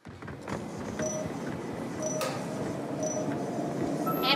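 Short electronic beeps count down.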